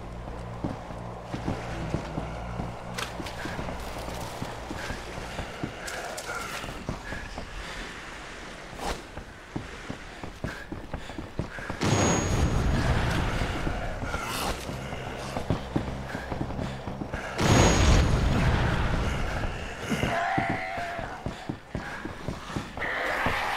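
Footsteps thud quickly across wooden boards.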